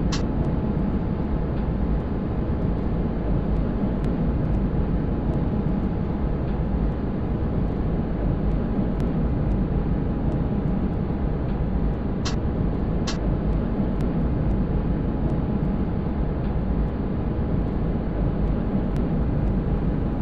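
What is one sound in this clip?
A tram rumbles steadily along its rails with a low hum.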